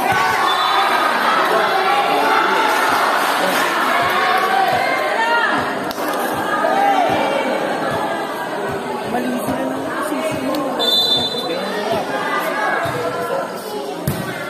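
A crowd of young spectators cheers and chatters loudly in an echoing covered court.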